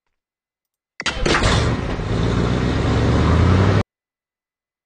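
A van engine rumbles loudly.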